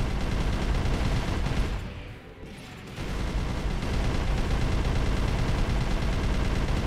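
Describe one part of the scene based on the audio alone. A mechanical thruster roars steadily.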